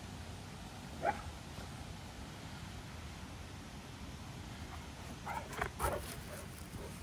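Dogs bark a few times outdoors.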